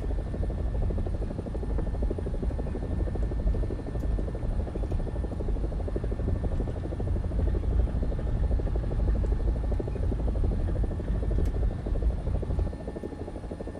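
A helicopter engine and rotor roar loudly and steadily from inside the cockpit.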